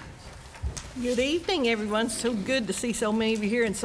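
An elderly woman speaks through a microphone in a large room.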